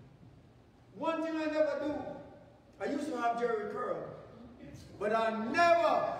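A man preaches with animation through a microphone in an echoing hall.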